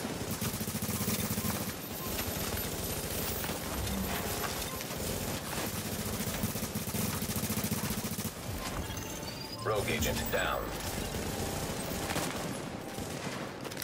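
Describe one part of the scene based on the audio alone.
Rapid gunfire rattles and crackles nearby.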